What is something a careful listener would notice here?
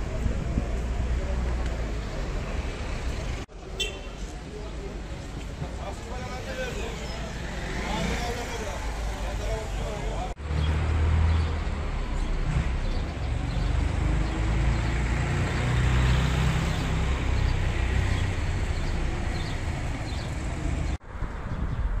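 A crowd of people murmurs and chatters outdoors.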